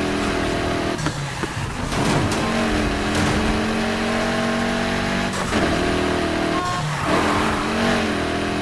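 Engine revs rise and fall as gears shift.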